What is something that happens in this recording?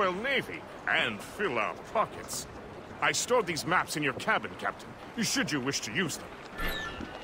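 A man talks loudly.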